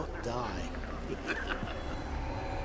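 A man speaks with amusement and chuckles.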